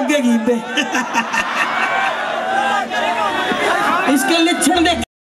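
A man sings loudly through a microphone over a loudspeaker system.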